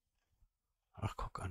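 A middle-aged man speaks briefly into a close microphone.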